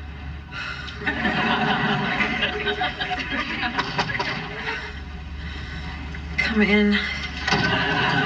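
A young woman moans and groans in her sleep nearby.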